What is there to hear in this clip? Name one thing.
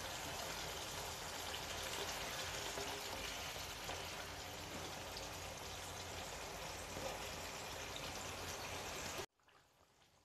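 A thick sauce simmers and bubbles softly in a pan.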